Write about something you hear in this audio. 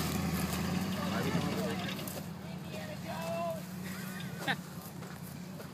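Young men whoop and shout from the back of a truck.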